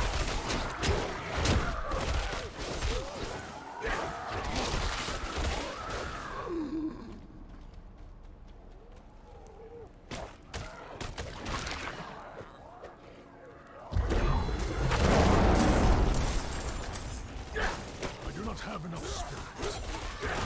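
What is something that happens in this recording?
Weapons clash and strike with heavy impacts in a fight.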